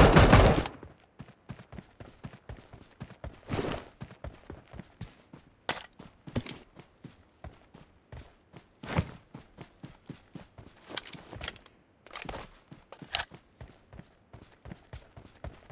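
Footsteps run over grass and dirt.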